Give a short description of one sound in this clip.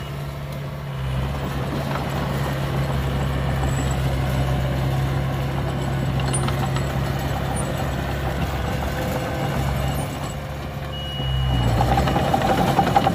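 Bulldozer tracks clank and squeak as they roll over dirt.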